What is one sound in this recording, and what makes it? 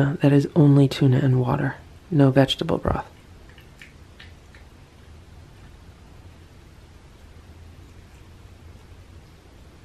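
A cat licks and chews a small piece of food.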